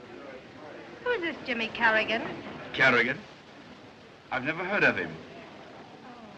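A young woman speaks brightly nearby.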